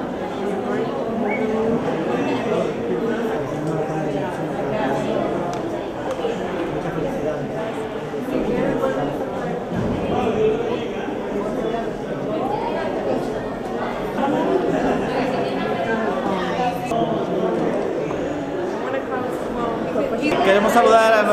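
Men and women chatter nearby in an echoing room.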